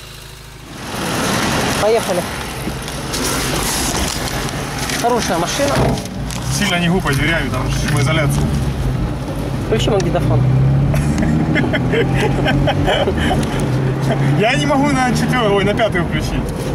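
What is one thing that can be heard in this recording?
A man talks inside a moving car.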